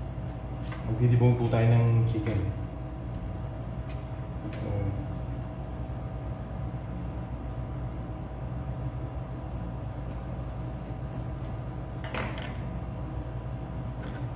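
A knife cuts through raw chicken on a cutting board.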